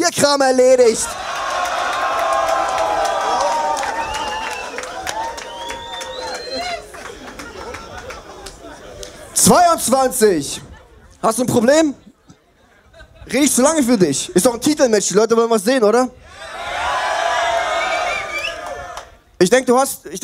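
A man raps loudly through a microphone with an echoing loudspeaker sound.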